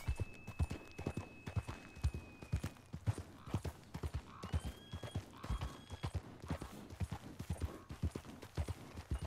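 Horse hooves thud steadily on a dirt trail.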